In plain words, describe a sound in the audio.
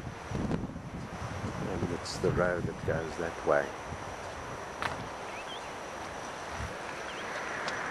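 Surf breaks on rocks far below.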